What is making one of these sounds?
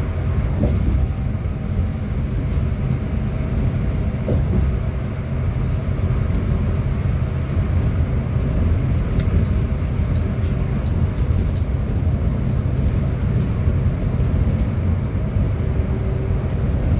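A bus engine rumbles steadily while driving along a highway.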